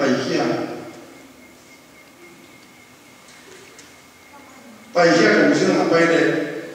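An elderly man speaks steadily into a microphone, heard through a loudspeaker in a large room.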